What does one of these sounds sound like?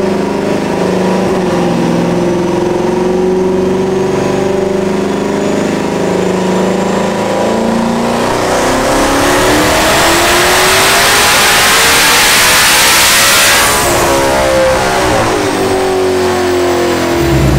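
A car engine runs loudly, idling and then revving up to a high roar before dropping back.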